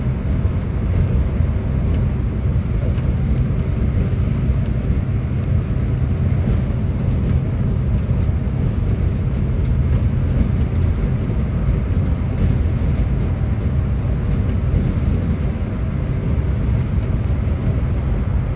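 Tyres roar on a road surface.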